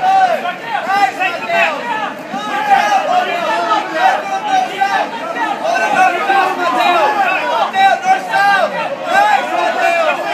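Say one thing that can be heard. A crowd of men and women shouts and cheers loudly in a large echoing hall.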